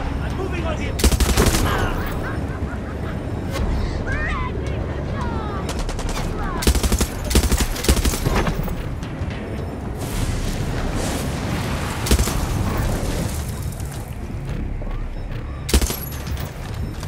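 Gunfire cracks in loud bursts.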